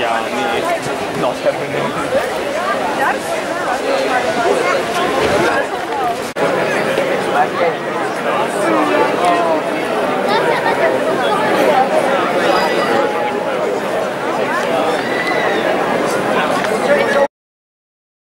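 A large outdoor crowd chatters all around.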